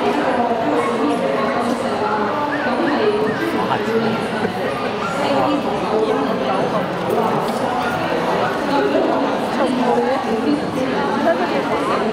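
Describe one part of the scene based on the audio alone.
A crowd of men and women chatters steadily in a large echoing hall.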